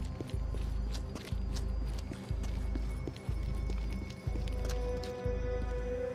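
Footsteps thud on pavement.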